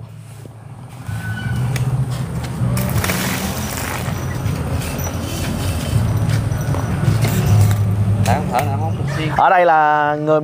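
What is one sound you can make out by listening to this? Water gushes from a hose and splashes onto wet concrete.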